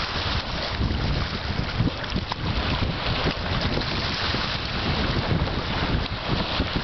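Small waves lap against a pebble shore.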